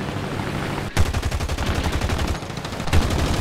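Aircraft cannons fire in rapid bursts.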